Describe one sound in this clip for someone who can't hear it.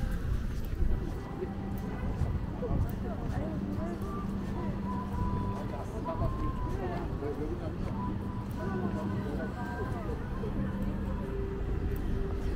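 Distant voices chatter outdoors.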